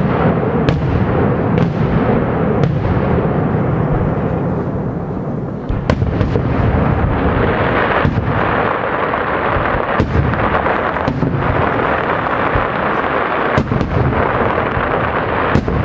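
Fireworks bang loudly overhead, one burst after another.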